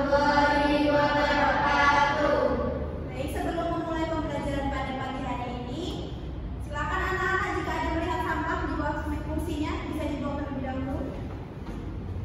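A woman speaks to a room, slightly distant and echoing.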